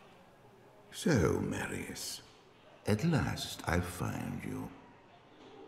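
A deep man's voice speaks slowly and gravely.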